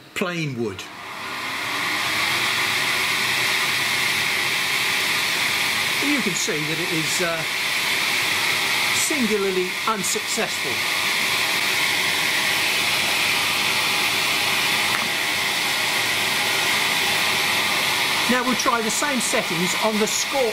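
A laser engraving machine whirs steadily with a loud fan hiss.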